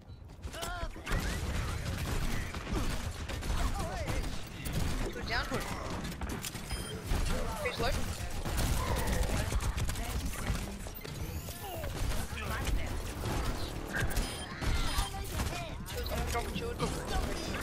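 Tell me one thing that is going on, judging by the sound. A grenade launcher fires in rapid bursts.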